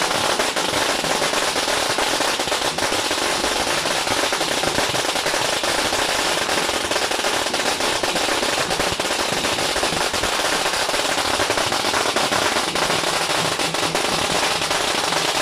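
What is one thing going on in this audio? Firecrackers crackle and pop rapidly and loudly nearby.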